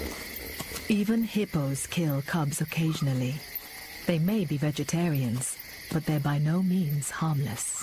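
A hippo tears and munches grass up close.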